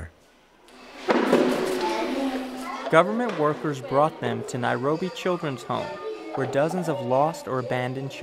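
Children talk and chatter nearby.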